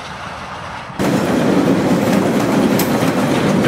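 A steam locomotive hisses and puffs loudly.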